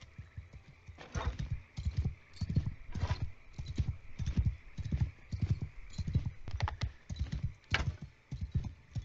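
Horse hooves thud in a steady, quick rhythm on the ground.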